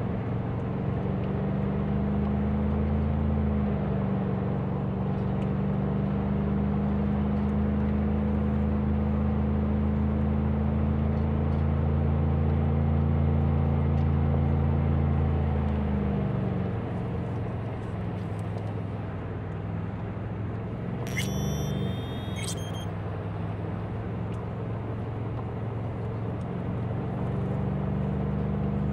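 A car engine hums steadily while driving, easing off partway through.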